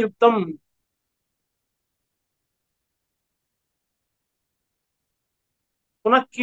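A man speaks calmly up close, with a long pause.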